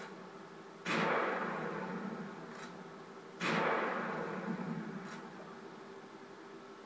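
Loud explosions boom through a television speaker and rumble away.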